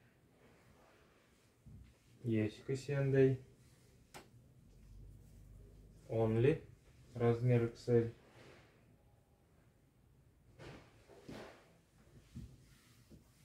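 Fabric rustles as clothes are handled and laid down.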